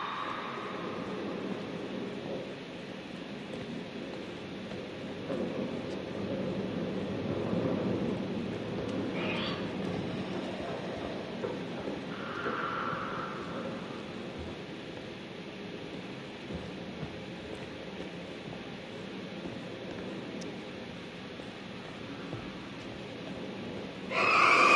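Footsteps scuff slowly across a gritty floor.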